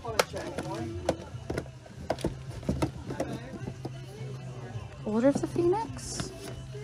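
Plastic cases clack and rattle as hands pull them from a shelf.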